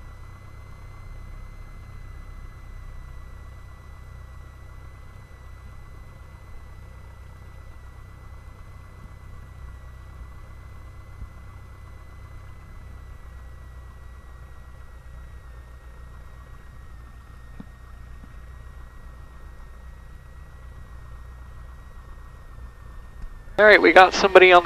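A small plane's engine drones steadily as the propeller spins.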